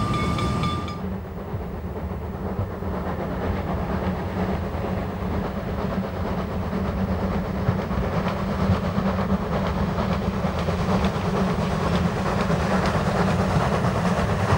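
A steam locomotive puffs and chugs hard in the distance.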